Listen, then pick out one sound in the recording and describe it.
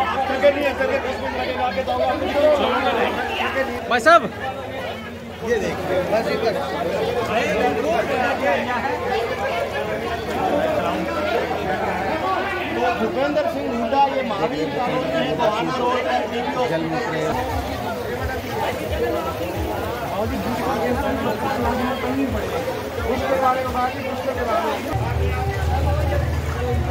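A crowd of men talk over one another close by, outdoors.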